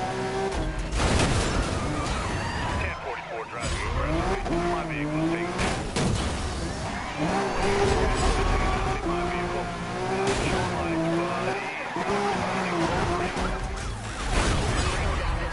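Metal crashes loudly as cars collide.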